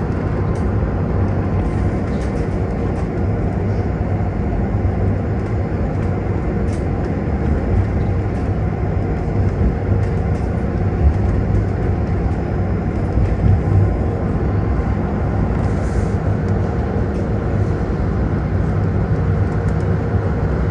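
Tyres roar steadily on the road surface.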